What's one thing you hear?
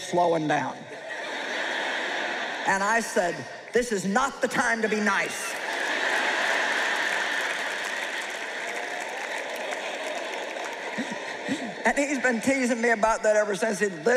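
A woman speaks with animation into a microphone in a large hall.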